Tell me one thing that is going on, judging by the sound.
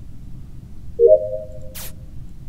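A short electronic chime rings once.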